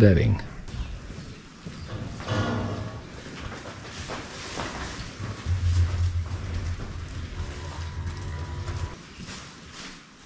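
Footsteps shuffle across a concrete floor.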